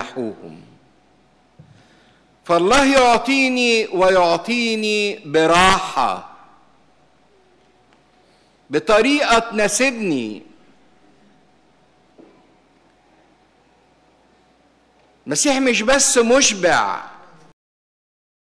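A middle-aged man speaks through a microphone in bursts, with pauses, in a reverberant hall.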